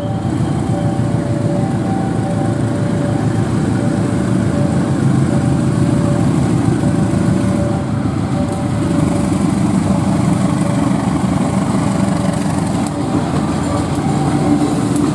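A diesel locomotive engine rumbles loudly as the train rolls slowly by.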